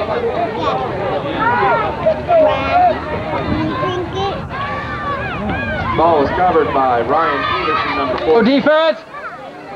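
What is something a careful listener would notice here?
A man talks to the children in a raised voice.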